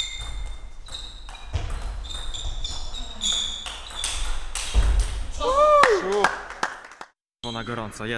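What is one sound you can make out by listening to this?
A table tennis ball clicks back and forth in a large echoing hall.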